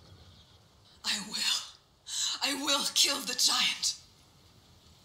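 A young woman answers firmly, close by.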